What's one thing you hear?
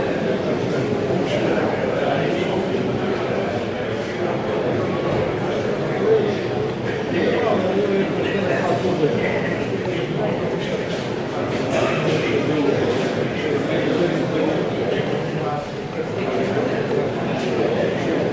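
A crowd of people murmurs and chatters indoors.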